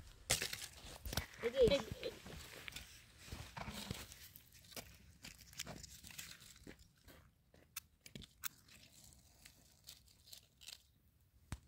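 Dry twigs snap and crack as they are broken by hand.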